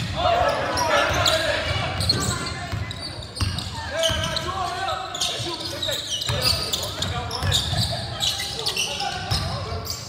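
A crowd of spectators chatters and calls out.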